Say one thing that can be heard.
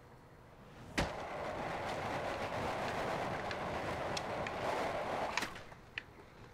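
Skateboard wheels roll steadily over concrete.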